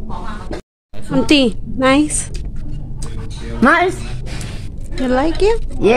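An older woman talks close by with animation.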